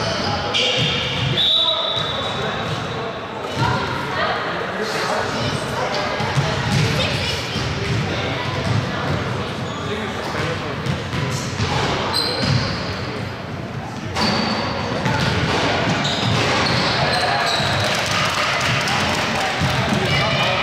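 Children's shoes squeak on a wooden court in a large echoing hall.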